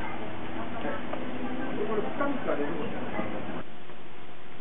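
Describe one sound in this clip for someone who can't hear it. A crowd of men and women chatter nearby outdoors.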